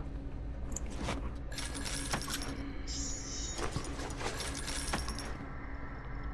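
Coins clink briefly as they are picked up.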